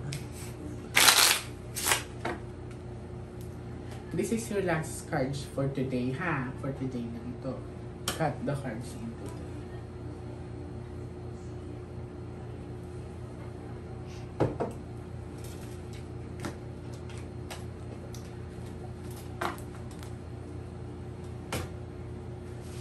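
Cards tap and slide on a cloth-covered table.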